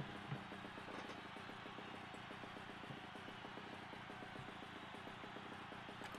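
Small kart engines idle with a fast, steady puttering.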